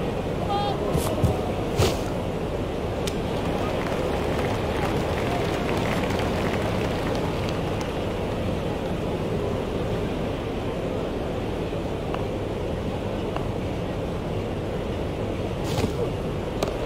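A bat strikes a cricket ball with a sharp crack.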